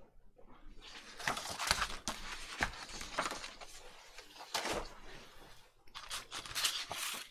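Paper rustles and slides as sheets are handled.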